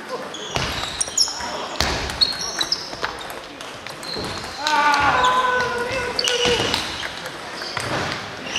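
Ping-pong balls click sharply on paddles and tables in a large echoing hall.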